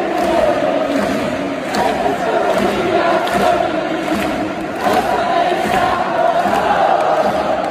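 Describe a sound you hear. A huge stadium crowd chants and sings loudly, echoing all around.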